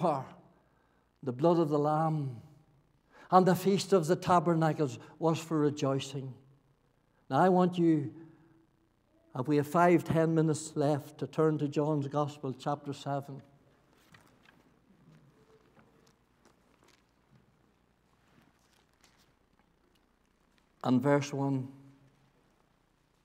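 An elderly man speaks slowly and earnestly into a microphone, in an echoing hall.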